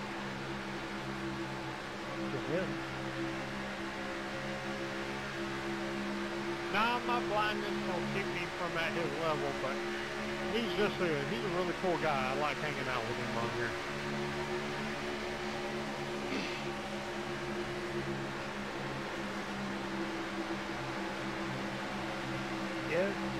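Racing car engines drone steadily at high speed.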